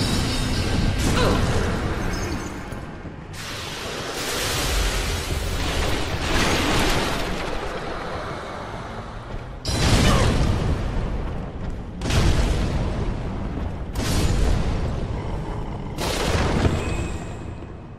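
A heavy blade swings with sharp whooshes and strikes.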